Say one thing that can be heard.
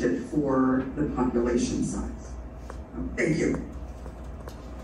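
A man speaks calmly in a room.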